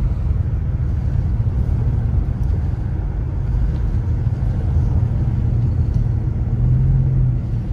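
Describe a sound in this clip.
Tyres crunch and rumble over packed snow.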